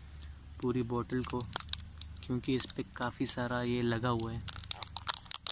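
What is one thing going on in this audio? A young man speaks calmly close to the microphone.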